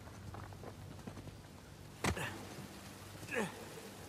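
Footsteps run over rock.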